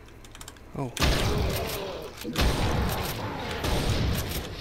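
A gun fires with loud, echoing blasts.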